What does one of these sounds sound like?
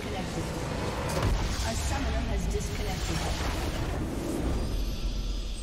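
A large structure explodes with a deep, rumbling boom.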